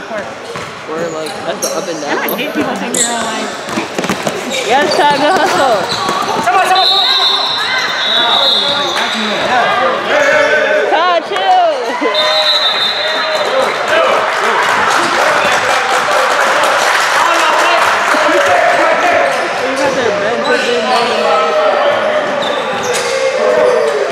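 A crowd of young men shouts and cheers in an echoing gym.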